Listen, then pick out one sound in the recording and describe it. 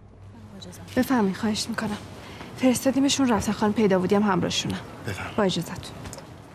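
A man speaks firmly nearby.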